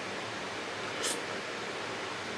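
A man slurps food up close.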